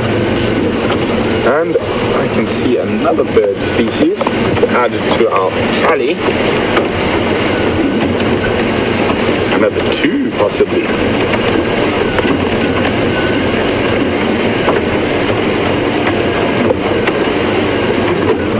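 A vehicle engine rumbles steadily as the vehicle drives slowly.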